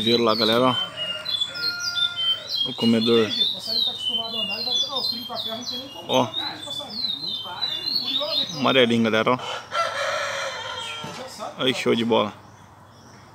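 A small bird sings.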